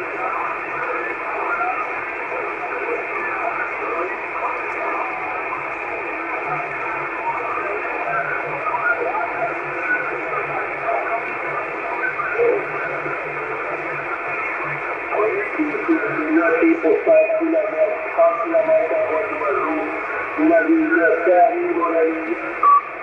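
A radio receiver hisses and crackles with static through its small loudspeaker.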